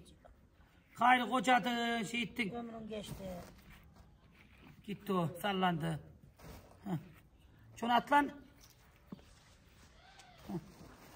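An elderly woman talks calmly nearby.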